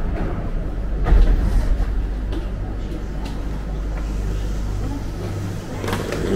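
A subway train rumbles low and steady.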